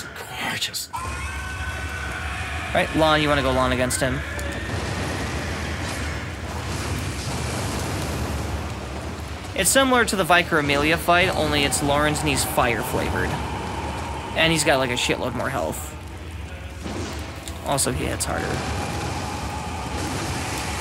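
Flames roar and burst in a game.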